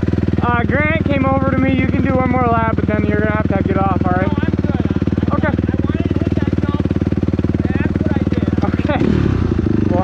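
A motorcycle engine idles steadily nearby.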